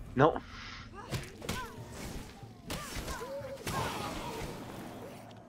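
An axe strikes with sharp, heavy blows.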